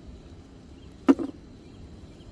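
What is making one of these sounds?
A cup clinks as it is set down on a hard lid.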